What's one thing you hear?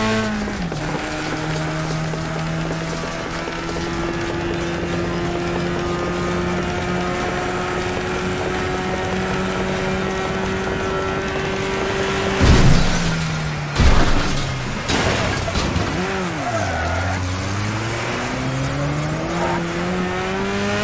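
A car engine hums steadily, its pitch dropping and rising.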